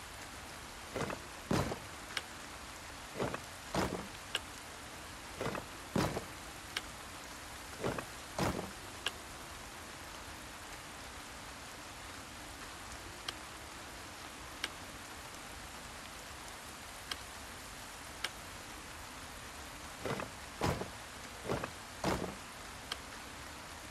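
Puzzle tiles click and whoosh as they turn, over and over.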